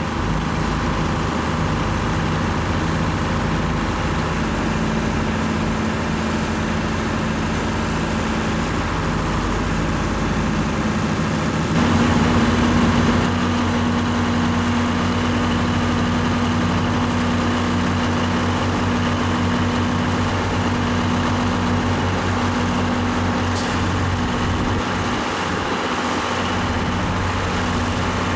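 A tractor engine idles and rumbles steadily nearby.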